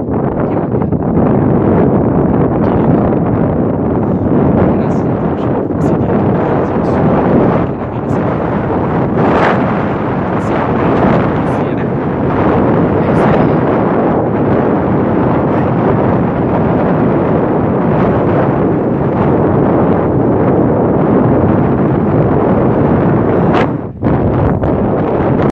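Strong wind roars and buffets the microphone outdoors.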